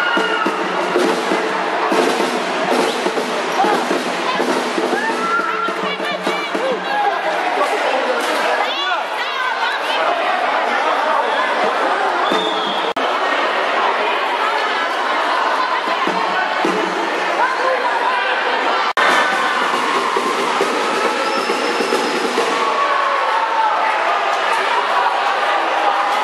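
A large crowd shouts and chatters loudly in a big echoing hall.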